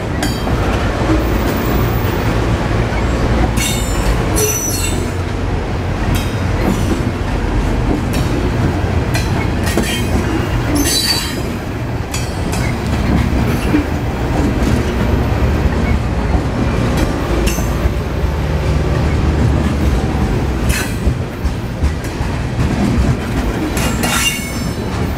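A freight train rumbles steadily past close by.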